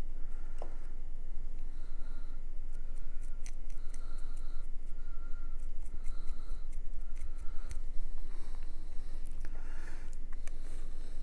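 Small pieces click and tap as they are handled.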